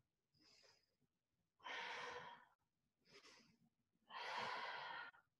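An older woman breathes deeply and audibly, close by.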